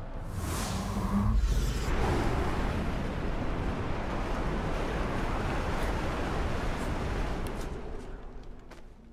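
A thick gas cloud hisses and churns with a low rumble.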